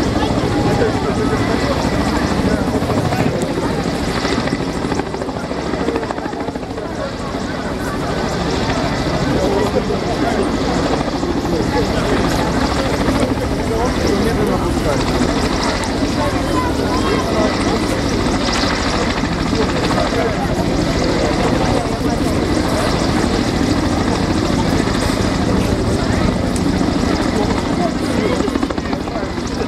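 A Kamov Ka-27 helicopter hovers overhead, its coaxial rotors thudding.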